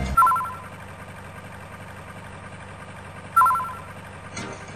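A short electronic menu chime beeps twice.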